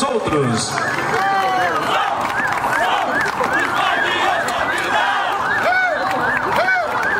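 A crowd of spectators cheers and calls out loudly outdoors.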